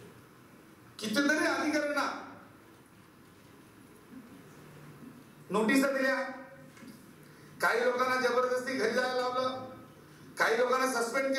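A middle-aged man speaks forcefully into a microphone in bursts, with pauses between.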